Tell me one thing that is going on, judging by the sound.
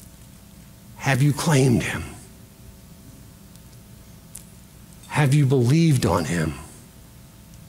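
A middle-aged man speaks with animation through a microphone, in short bursts.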